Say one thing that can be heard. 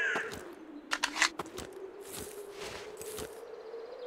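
An assault rifle is reloaded with metallic clicks.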